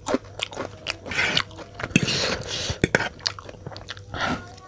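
A man slurps and chews noodles wetly close to a microphone.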